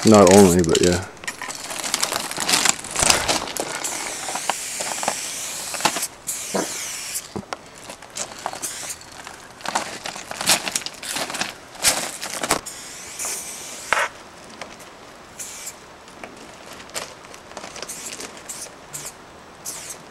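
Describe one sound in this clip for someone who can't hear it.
A spray can hisses in short and long bursts.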